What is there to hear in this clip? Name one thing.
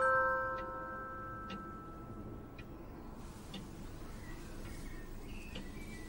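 A clock ticks steadily.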